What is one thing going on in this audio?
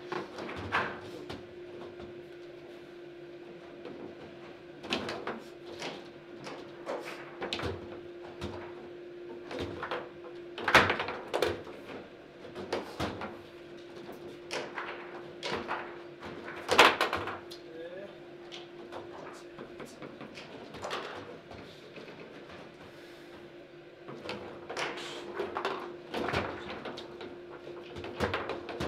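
Foosball rods clatter as players spin and slide them.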